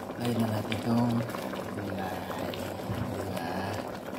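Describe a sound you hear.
Vegetables drop into a pot of simmering broth.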